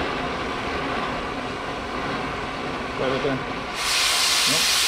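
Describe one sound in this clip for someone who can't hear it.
A cutting torch hisses softly.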